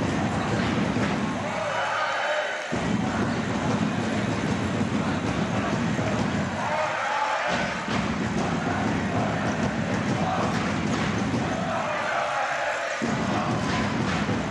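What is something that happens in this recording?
A large crowd cheers and chants in an echoing hall.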